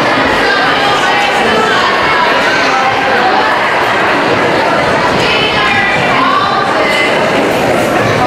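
A large crowd sings together in a big echoing hall.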